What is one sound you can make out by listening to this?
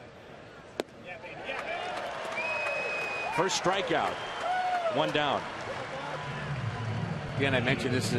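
A crowd cheers and whistles loudly in a stadium.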